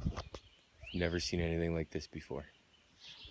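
A man speaks briefly and calmly, close up.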